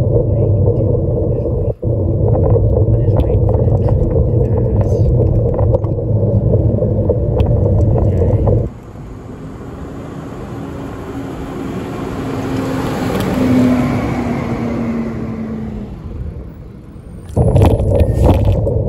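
Wheels roll with a loud, rough rumble over asphalt.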